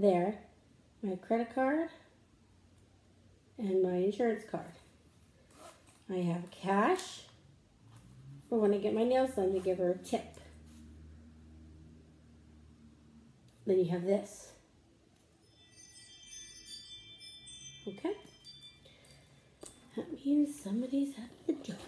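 A woman talks calmly and close by, in short phrases.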